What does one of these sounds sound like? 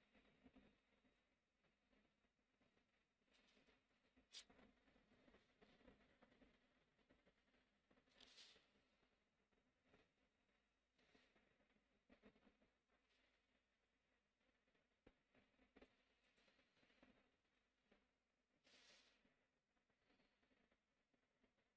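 Paper rustles and slides as a hand moves a sheet.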